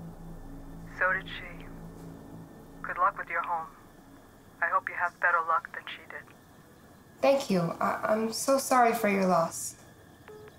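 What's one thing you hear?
A young woman talks on a phone, close by and calmly.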